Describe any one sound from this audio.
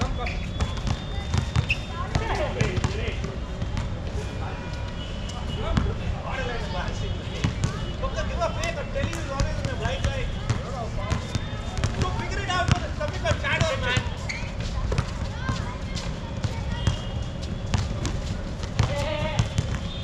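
Young men shout and call out to each other across an outdoor court.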